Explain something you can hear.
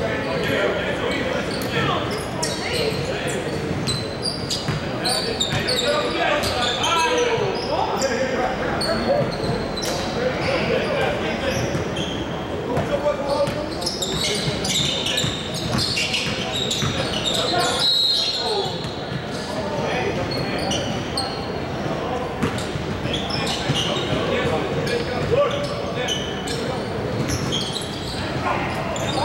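Young men shout and call out to each other across an echoing gym.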